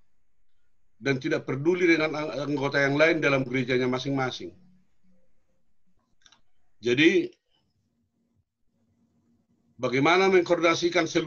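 A middle-aged man speaks earnestly and close up, with pauses between phrases.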